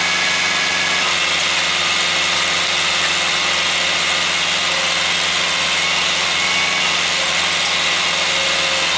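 A hydraulic crane whines as it lifts a heavy log.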